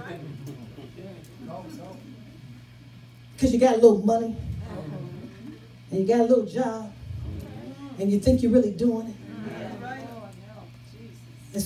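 A woman speaks with animation into a microphone, heard through loudspeakers in an echoing room.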